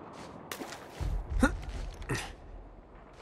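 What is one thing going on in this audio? Hands grab a wooden beam with a dull thud.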